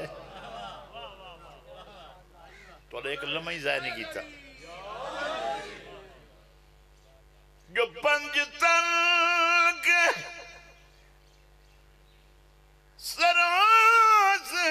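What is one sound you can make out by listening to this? A middle-aged man speaks and chants passionately into a microphone through a loudspeaker.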